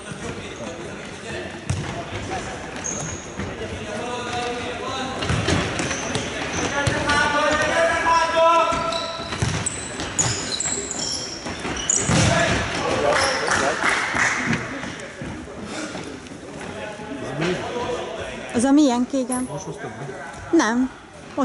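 A ball is kicked with sharp thuds in an echoing hall.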